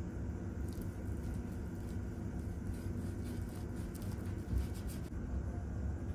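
A knife slices through a sushi roll on a board.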